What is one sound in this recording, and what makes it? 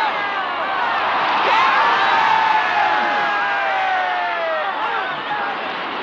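A young man laughs excitedly.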